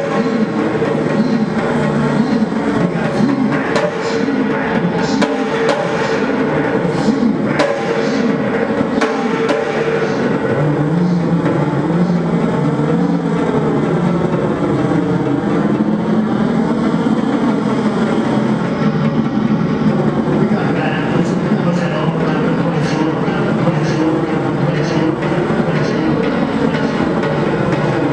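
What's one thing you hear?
A man sings and growls into a microphone through loudspeakers.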